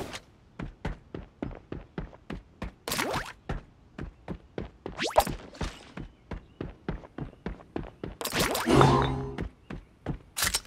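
Footsteps tap quickly and steadily on a hard floor.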